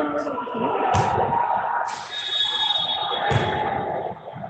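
A basketball bounces on a wooden court.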